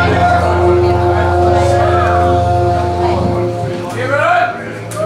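A band plays a sustained chord through loudspeakers.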